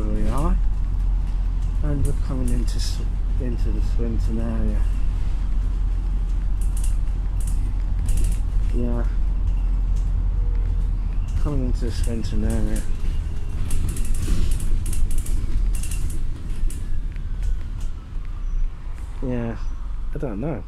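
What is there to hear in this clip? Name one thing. A bus engine rumbles steadily while driving along a road.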